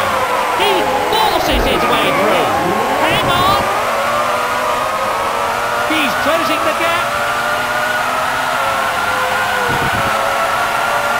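Other racing cars roar past, their pitch dropping as they go by.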